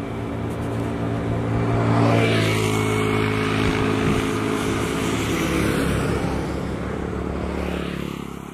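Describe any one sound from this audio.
A motor scooter engine drones close by and then fades into the distance.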